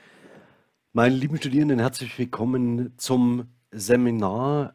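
A man speaks calmly and warmly into a nearby microphone.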